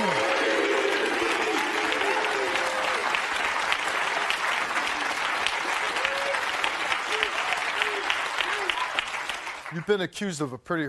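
An audience applauds and cheers loudly.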